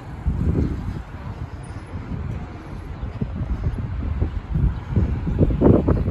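Traffic hums from a street below.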